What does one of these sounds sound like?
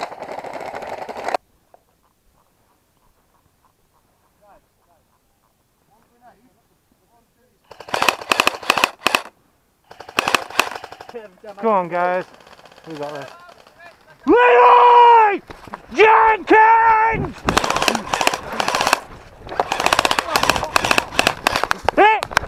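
Airsoft guns fire in rapid bursts of sharp clicks.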